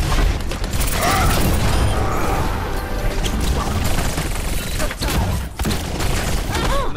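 Game sound effects chime and whoosh.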